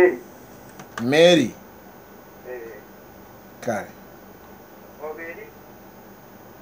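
A young man speaks close into a microphone in short, animated bursts.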